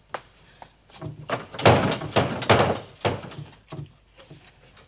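A woman knocks on a wooden door.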